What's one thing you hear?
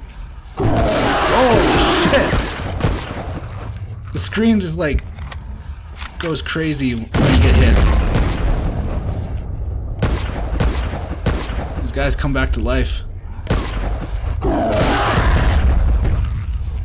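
A rifle fires several sharp shots.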